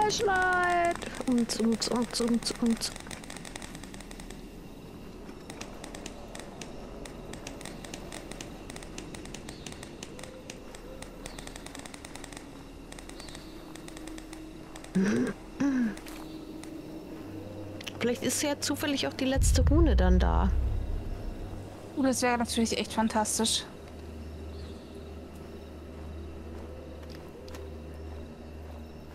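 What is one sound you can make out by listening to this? Footsteps crunch slowly on a rough forest path.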